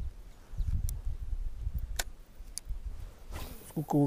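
A fishing reel clicks as its line is wound in.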